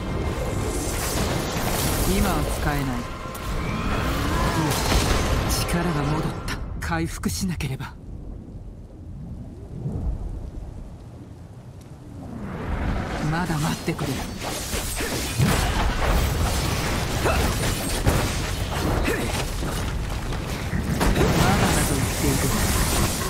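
Spells and weapons clash and explode loudly in a game battle.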